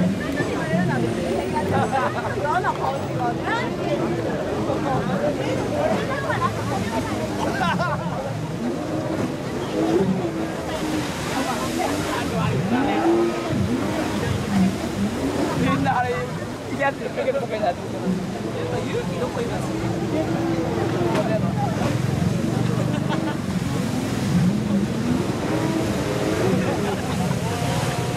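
A crowd of men and women chatter and call out outdoors.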